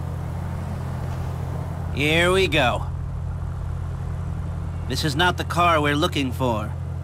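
A car engine hums steadily and low.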